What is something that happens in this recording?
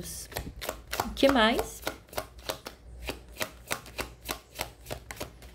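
Playing cards are shuffled by hand with quick, regular soft snaps.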